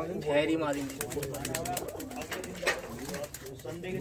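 Pigeon wings flap and clatter.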